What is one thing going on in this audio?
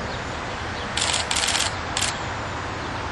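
Water splashes as a large animal swims and dives.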